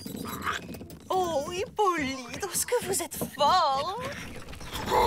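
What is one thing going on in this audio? A woman exclaims excitedly.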